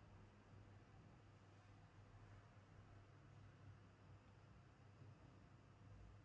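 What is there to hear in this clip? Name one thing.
A blanket rustles softly.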